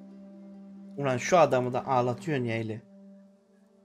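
A man speaks quietly and slowly, close by.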